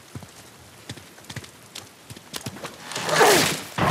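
Footsteps patter on rock.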